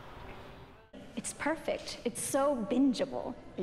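A young woman talks with animation up close.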